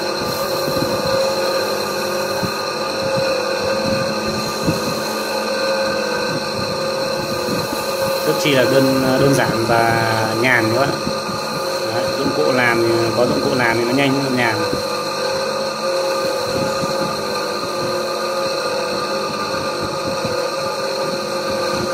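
An electric motor hums steadily as a polishing wheel spins.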